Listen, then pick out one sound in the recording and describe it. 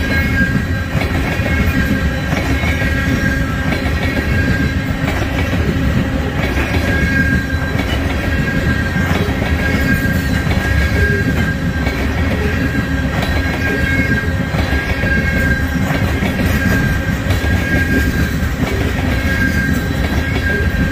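Wheels clack rhythmically over rail joints.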